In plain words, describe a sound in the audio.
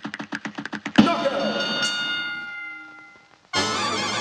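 A knockout fanfare rings out.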